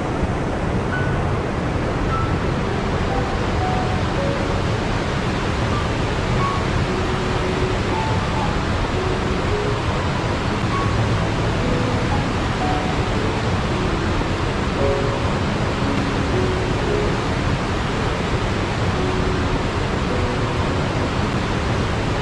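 Water rushes and splashes steadily over rocks.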